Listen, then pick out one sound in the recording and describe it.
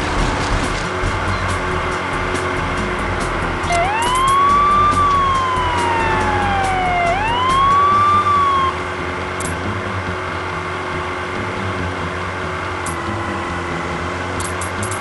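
Water sprays and splashes behind a speeding jet ski.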